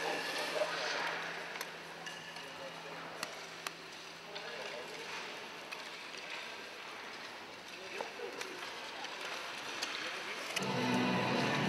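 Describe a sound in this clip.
Hockey sticks knock sharply on ice in an echoing rink.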